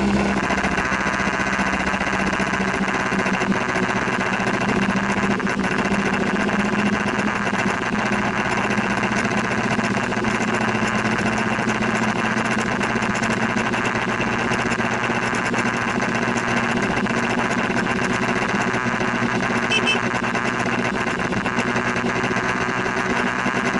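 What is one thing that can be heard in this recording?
Rain patters steadily on a windscreen.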